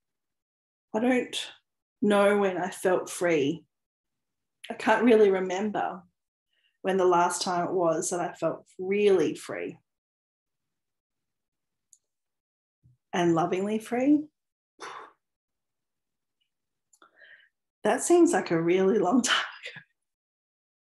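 A woman talks close to a microphone, calmly and with pauses.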